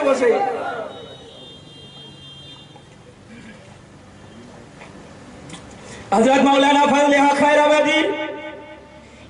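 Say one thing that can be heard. A young man speaks forcefully into a microphone, his voice carried over loudspeakers outdoors.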